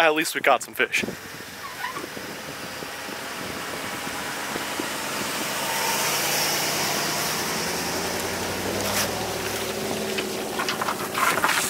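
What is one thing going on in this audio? A truck engine rumbles as the truck backs up slowly.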